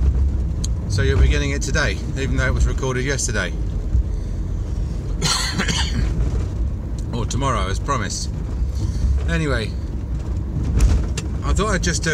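A middle-aged man talks calmly close up.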